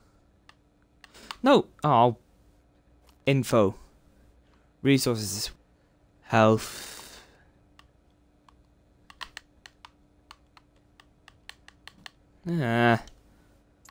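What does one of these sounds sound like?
A game menu gives soft electronic clicks as it opens and closes.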